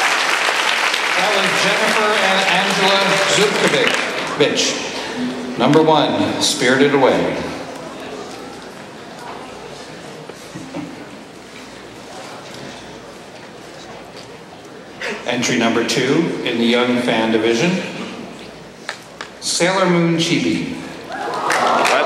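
A man speaks slowly and theatrically through a microphone, with pauses between phrases.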